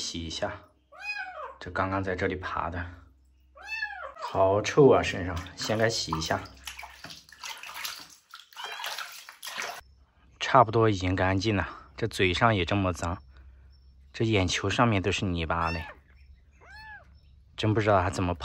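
A kitten mews in high, thin cries.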